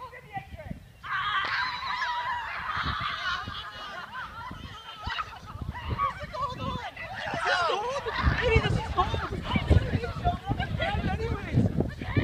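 Children shout and scream excitedly outdoors.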